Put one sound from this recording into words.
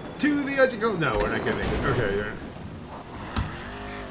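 A car crashes down onto the ground with a thud.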